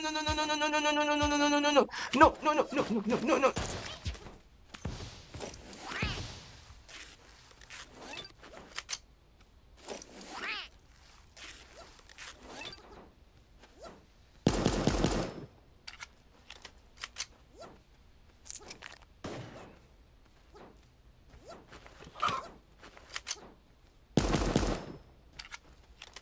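Game gunshots crack in quick bursts.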